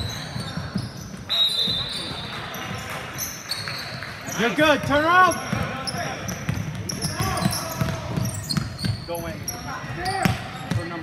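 A basketball bounces on a hardwood floor in an echoing gym.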